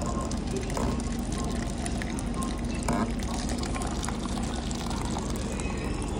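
Hot coffee pours from a dispenser tap into a paper cup.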